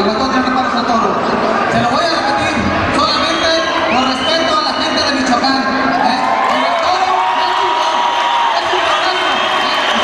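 A man speaks loudly into a microphone, heard through loudspeakers.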